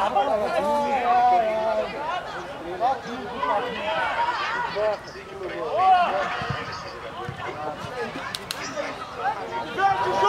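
Young boys shout and call out across an open outdoor field.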